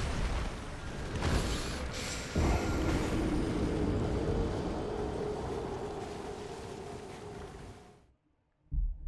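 A huge beast stomps and roars.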